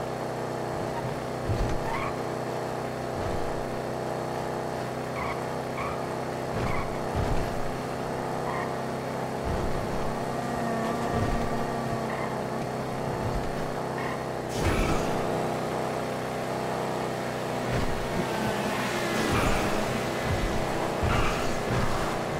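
A car engine roars steadily as it speeds along.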